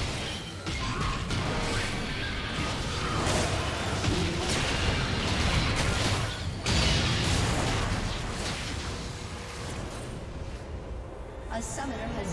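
Game spell effects burst and clash in a busy fight.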